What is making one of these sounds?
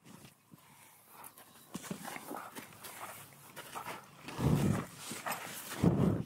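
A horse's hooves step softly on sand.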